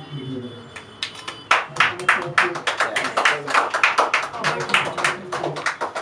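A crowd claps and applauds loudly.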